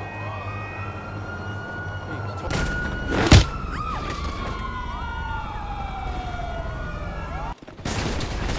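A siren wails and sweeps up and down.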